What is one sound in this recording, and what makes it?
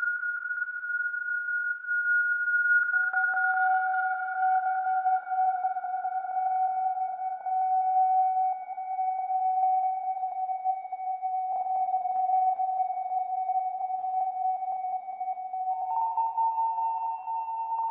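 A modular synthesizer plays steady, shifting electronic tones.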